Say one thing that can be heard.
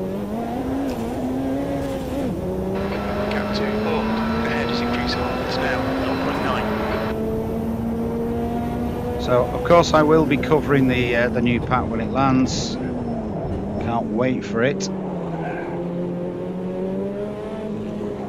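A racing car engine drones steadily, rising and falling in pitch as it shifts gears.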